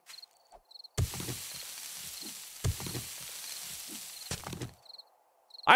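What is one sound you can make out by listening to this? A shovel scrapes and thuds into dirt.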